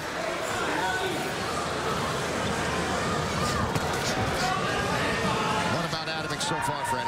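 A large crowd murmurs and cheers.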